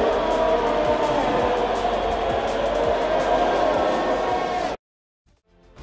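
A racing car engine roars.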